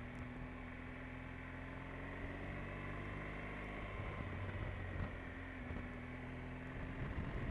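Wind rushes past a helmet.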